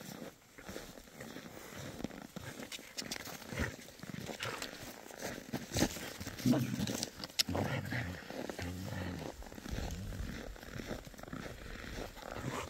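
A dog runs through snow.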